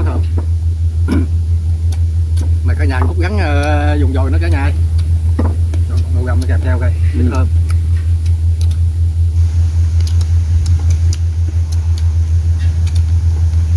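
Chopsticks clink against bowls.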